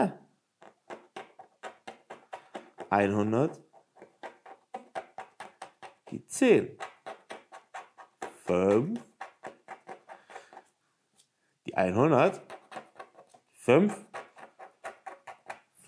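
A plastic scraper scratches rapidly across a scratch card.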